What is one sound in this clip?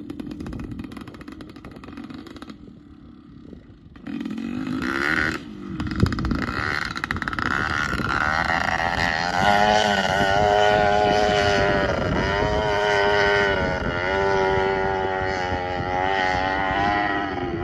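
A dirt bike engine revs hard at full throttle in the distance as it climbs a steep hill.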